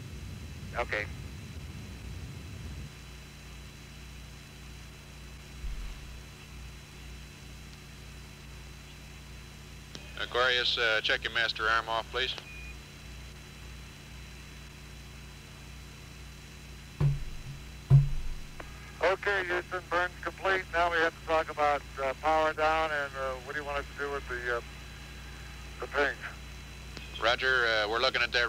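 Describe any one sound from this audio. A small propeller plane's engine drones steadily as it takes off.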